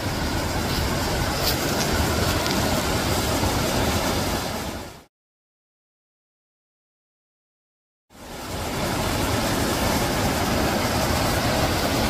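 A stream rushes and splashes steadily over rocks nearby.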